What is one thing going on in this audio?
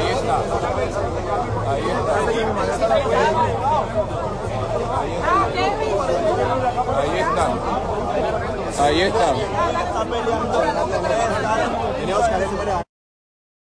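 A man speaks loudly and agitatedly close to a phone microphone.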